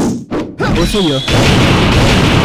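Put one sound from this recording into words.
A heavy hit lands with a sharp crack.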